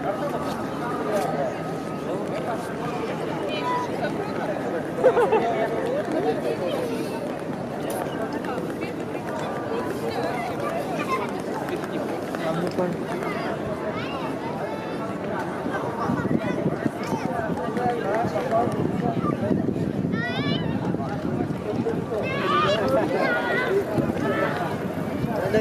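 A crowd of men and women chatter and walk about outdoors.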